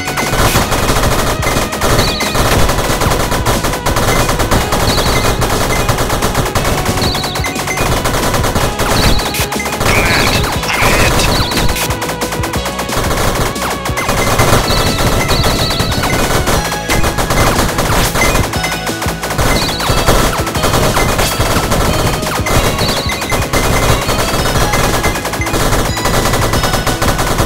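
Small explosions pop repeatedly as a ship blasts enemies.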